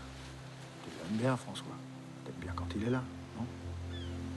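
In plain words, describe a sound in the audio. A man speaks calmly and quietly, close by.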